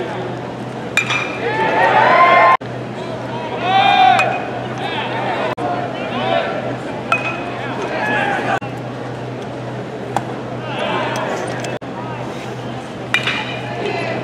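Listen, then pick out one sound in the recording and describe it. A baseball cracks sharply off a bat.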